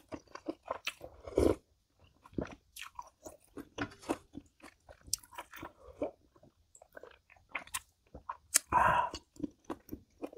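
A woman slurps soup loudly up close.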